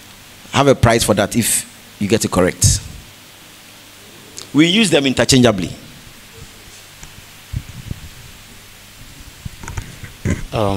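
A man speaks with animation to an audience.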